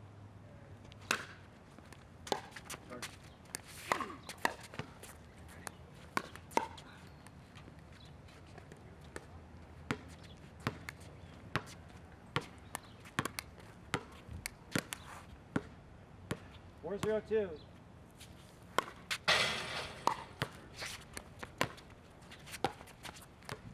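A plastic ball bounces on a hard court.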